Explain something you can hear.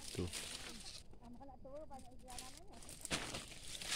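Leaves rustle as a hand brushes through a bush.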